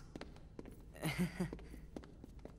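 A teenage boy chuckles softly.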